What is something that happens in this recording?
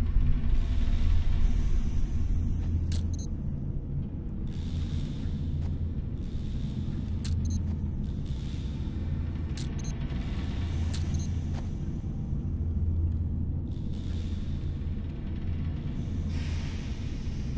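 A fire roars with a deep, steady rumble.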